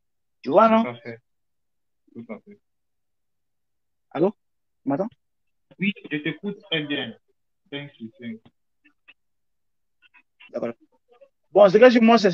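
A man speaks with animation through an online call, in short bursts.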